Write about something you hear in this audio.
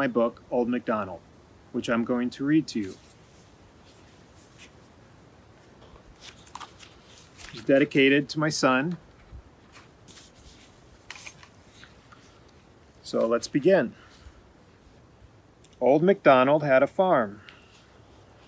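A man reads aloud calmly and expressively, close by.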